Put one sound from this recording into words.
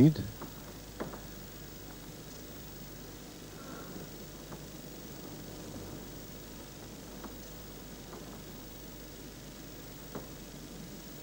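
Snooker balls click against each other on a table.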